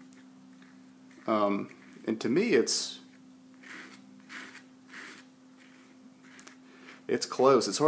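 A paintbrush softly dabs and strokes wet paint on paper.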